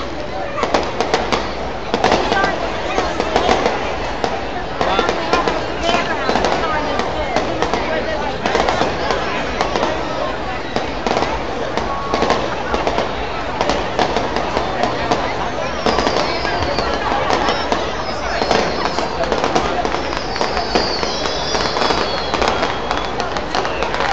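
A crowd of people chatters and cheers nearby.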